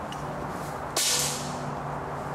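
An air rifle fires once with a sharp pop.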